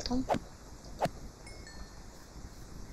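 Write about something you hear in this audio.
A sword strikes a sheep with a soft thud.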